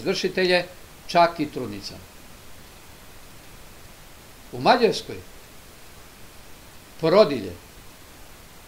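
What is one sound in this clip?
An elderly man speaks calmly in short phrases through a microphone, with long pauses.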